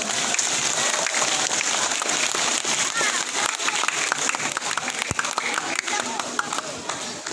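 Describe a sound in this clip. A large crowd claps and cheers outdoors.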